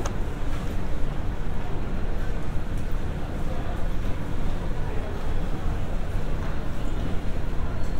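An escalator hums steadily in a large echoing hall.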